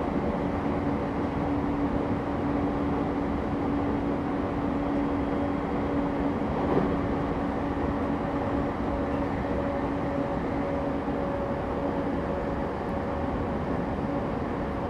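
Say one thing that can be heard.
A stopped electric train hums steadily in an echoing station.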